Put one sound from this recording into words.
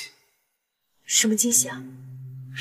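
A young woman asks a short question.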